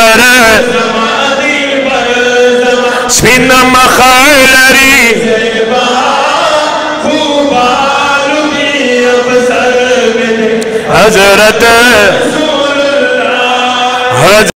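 A middle-aged man chants a melodic recitation loudly into a microphone.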